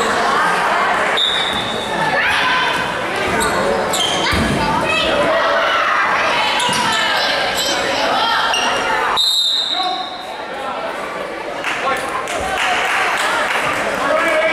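Young girls shout and call out in a large echoing gym.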